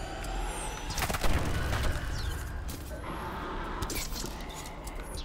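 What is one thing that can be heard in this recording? Game gunfire and effects crackle and boom.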